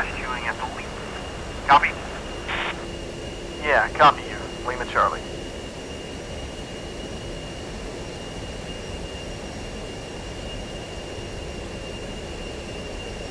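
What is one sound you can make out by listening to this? A jet engine drones steadily with a high whine.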